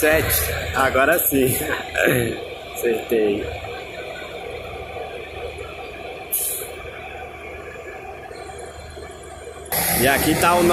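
A bus engine rumbles as the bus drives away down the road.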